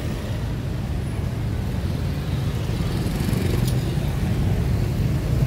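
Motorbike engines hum and buzz past along a street.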